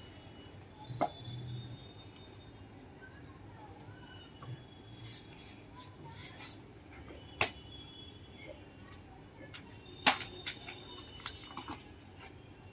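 Cardboard sheets tap and knock on a wooden table.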